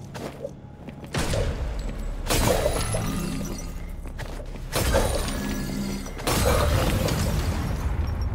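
Sword blows whoosh and strike in quick succession.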